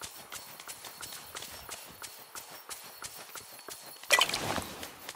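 Soft footsteps patter quickly on grass.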